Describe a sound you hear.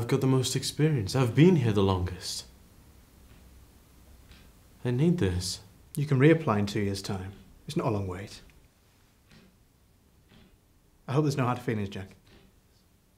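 A young man speaks quietly and haltingly, close by.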